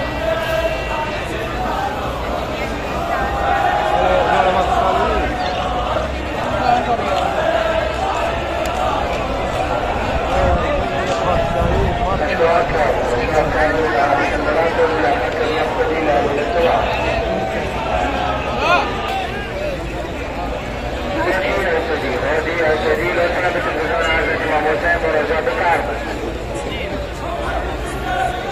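A large crowd of men chants and cries out together in a loud echoing hall.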